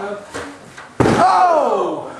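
A body crashes down hard onto a padded floor.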